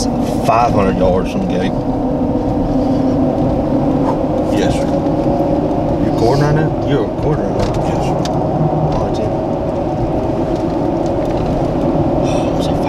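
A vehicle engine hums steadily from inside the cab.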